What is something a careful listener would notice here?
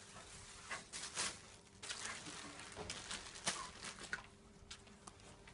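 Clothes rustle and swish as they are tossed onto a pile.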